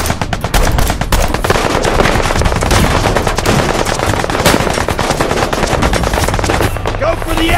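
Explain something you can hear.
Guns fire rapid bursts of shots.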